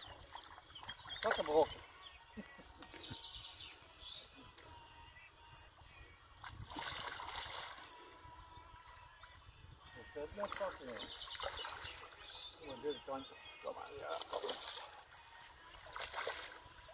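A fish splashes and thrashes in water close by.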